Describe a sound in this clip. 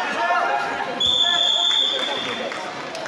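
A referee blows a whistle sharply.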